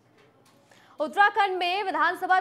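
A young woman reads out calmly and clearly into a microphone.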